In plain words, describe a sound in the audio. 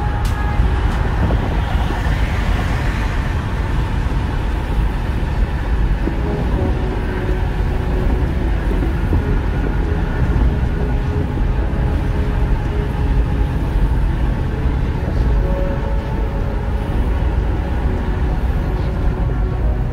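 A car's engine hums steadily.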